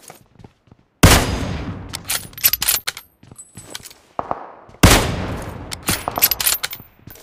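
A sniper rifle fires two loud shots that echo away.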